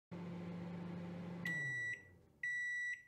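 A microwave oven hums steadily.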